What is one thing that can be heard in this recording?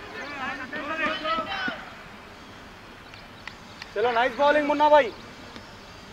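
Men shout and call out loudly outdoors.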